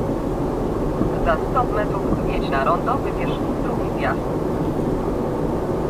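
A van passes by in the other direction.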